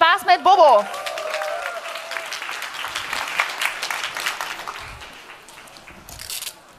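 An audience applauds and cheers in a large hall.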